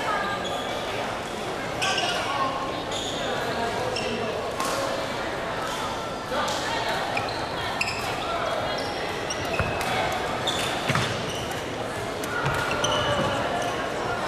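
Shuttlecocks are struck with sharp taps of rackets.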